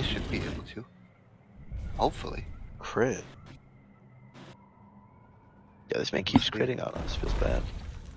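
Magical spell effects whoosh and shimmer in bursts.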